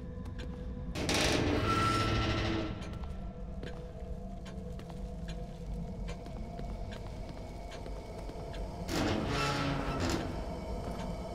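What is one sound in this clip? A heavy metal door creaks and rattles as it is pushed.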